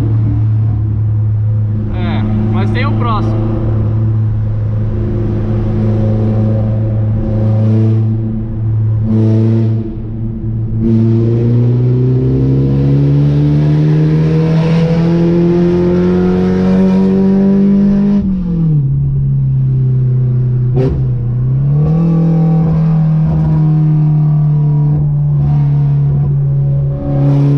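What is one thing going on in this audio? A car engine hums loudly and revs up through the gears as it accelerates.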